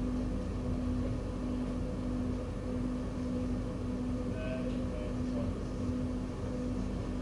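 A train engine hums steadily from inside the cab.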